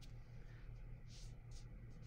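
A brush strokes softly across paper.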